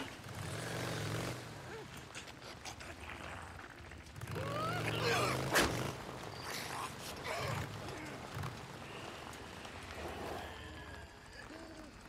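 A motorcycle engine rumbles and revs.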